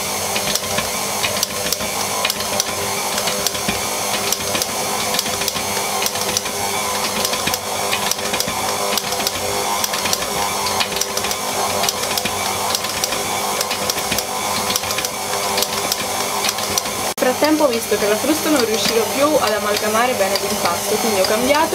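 An electric stand mixer whirs steadily as it beats a thick batter.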